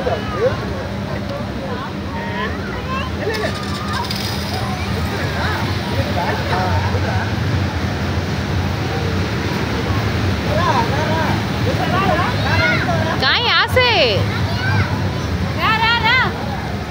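Children shout and squeal with excitement, outdoors, not far off.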